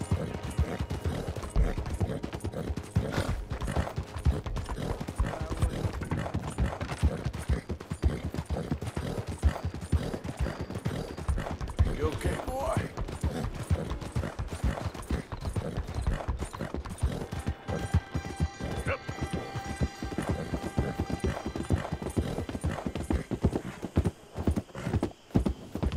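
Horse hooves clop steadily at a trot on gravel.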